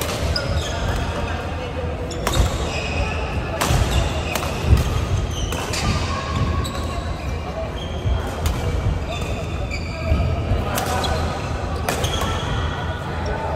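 Shoes squeak on a wooden floor in short chirps.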